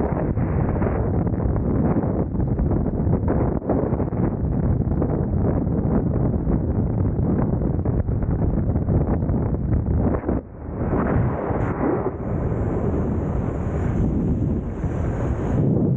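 Wind roars and buffets a helmet-mounted microphone in freefall.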